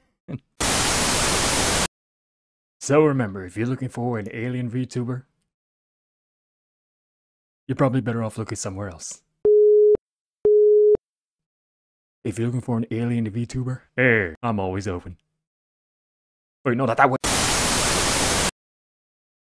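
Loud static hisses in short bursts.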